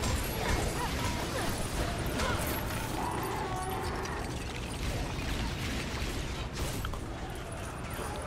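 Small coins jingle as they are collected.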